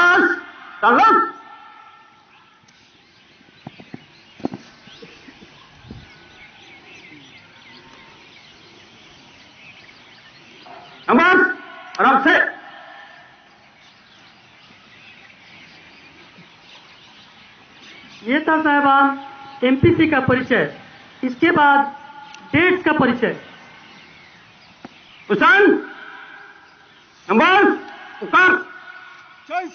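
A man loudly shouts drill commands outdoors.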